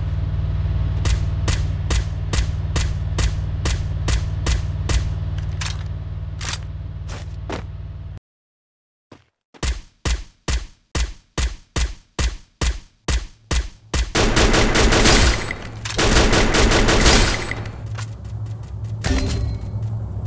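Rapid gunshots fire in regular bursts.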